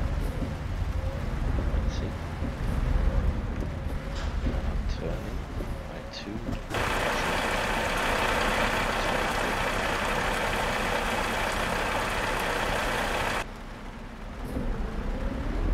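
A diesel truck engine rumbles.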